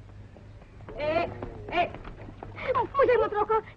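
A woman calls out loudly.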